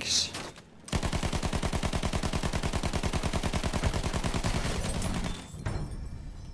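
A machine gun fires in a rapid, steady burst.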